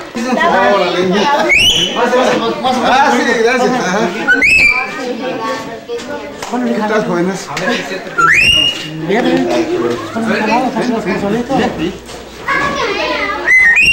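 Men talk and laugh cheerfully close by.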